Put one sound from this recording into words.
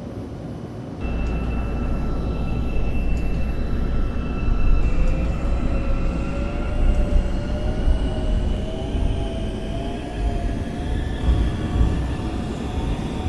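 A train's electric motors whine, rising in pitch as the train speeds up.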